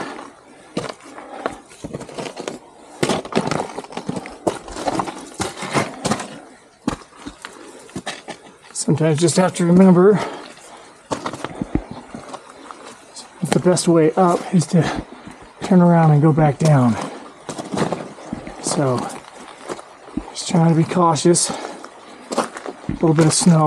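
Hands and boots scrape and knock against rock.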